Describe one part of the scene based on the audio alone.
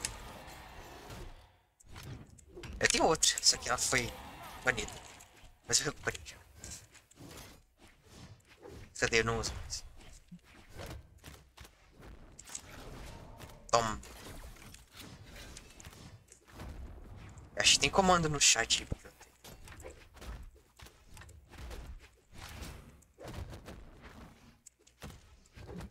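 Punches and blade strikes land with sharp electronic thuds and clashes.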